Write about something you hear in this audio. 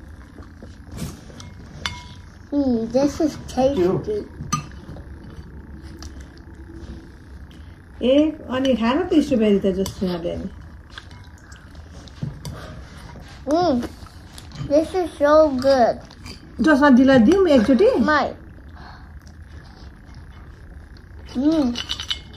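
Spoons scrape and clink on plates.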